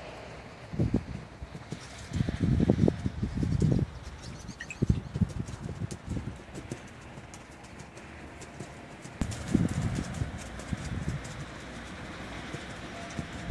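A horse canters over soft sand at a distance.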